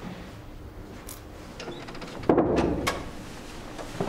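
A man knocks on a door.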